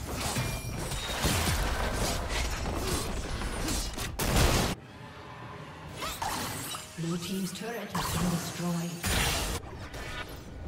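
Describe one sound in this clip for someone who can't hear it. Game spell effects zap and clash in a busy fight.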